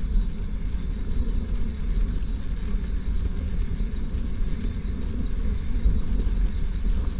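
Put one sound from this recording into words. Tyres rumble over brick paving.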